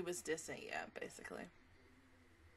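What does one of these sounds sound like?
A young woman speaks briefly and close into a microphone.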